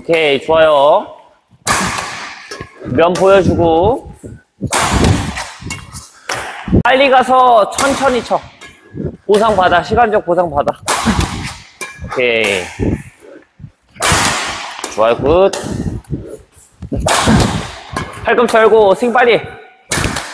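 A badminton racket strikes a shuttlecock with sharp pops.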